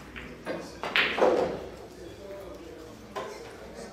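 Billiard balls clack together on a table.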